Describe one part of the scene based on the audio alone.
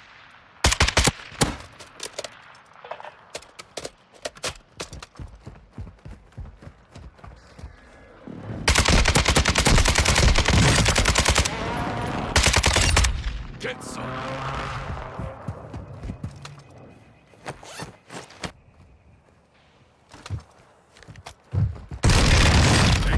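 Rapid gunshots fire in loud bursts.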